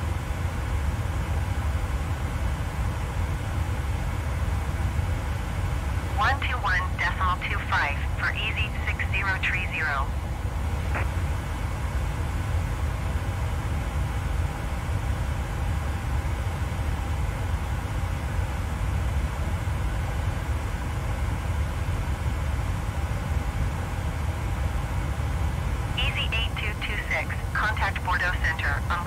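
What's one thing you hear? A jet airliner's engines drone steadily.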